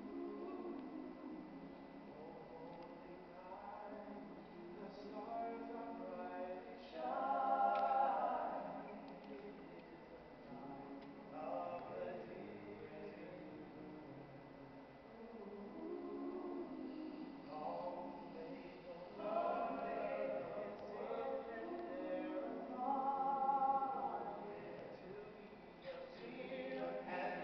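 A men's choir sings together in a large echoing hall.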